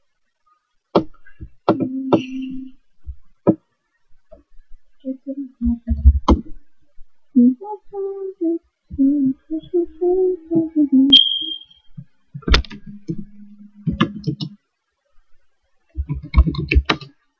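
A young woman speaks quietly and casually close by, heard through a small microphone.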